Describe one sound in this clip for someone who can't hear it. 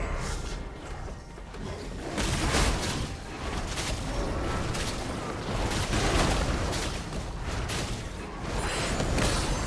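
Magic blasts whoosh and burst rapidly during a game battle.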